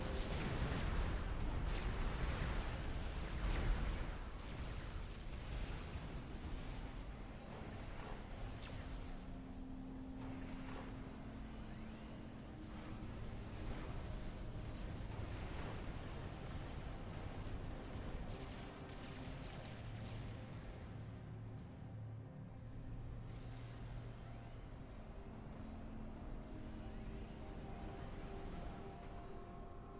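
Explosions and gunfire rumble and crackle in a battle.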